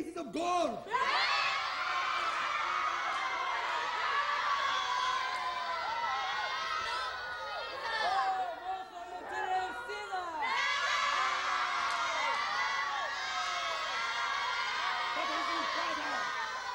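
A chorus of many voices sings together.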